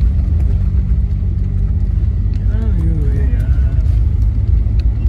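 A vehicle engine rumbles steadily from inside a car.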